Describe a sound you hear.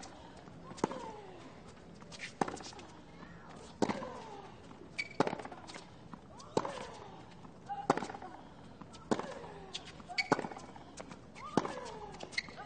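A tennis ball is struck hard back and forth by rackets.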